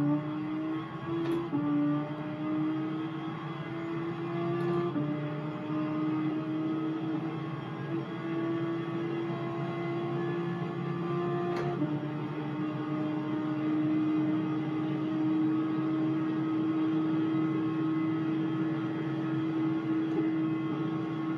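A racing car engine roars steadily, climbing in pitch and dropping at each gear change.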